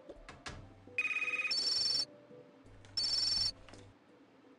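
A tablet game plays short electronic ringing tones.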